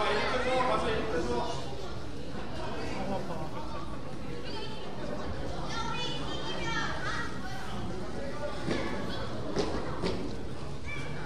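Sneakers squeak on a hard gym floor.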